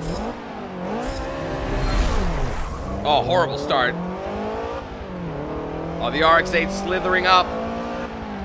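A car engine revs up and down as gears shift.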